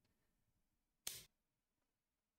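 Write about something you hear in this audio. A game piece clicks once as it is placed on the board.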